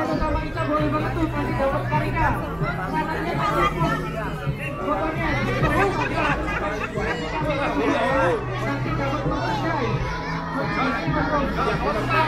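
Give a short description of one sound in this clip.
A crowd of people chatter loudly outdoors.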